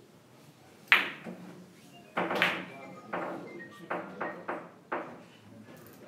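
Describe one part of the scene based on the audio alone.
Billiard balls click against each other and thud off the cushions.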